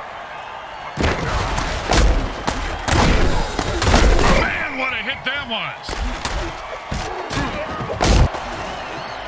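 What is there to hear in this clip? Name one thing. Armoured players crash and thud together in heavy tackles.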